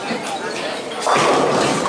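Bowling pins scatter with a loud crash.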